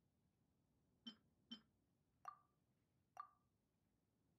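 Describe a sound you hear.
Soft menu clicks chime one after another.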